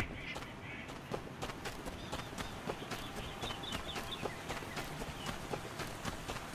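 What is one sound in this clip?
Footsteps run quickly over ground and stone steps.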